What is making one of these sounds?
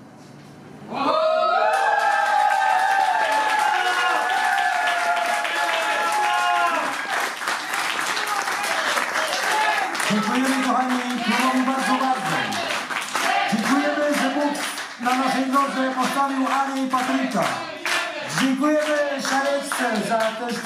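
A live band plays a lively folk song, heard through loudspeakers.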